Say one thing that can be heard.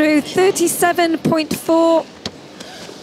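A woman laughs with emotion close by.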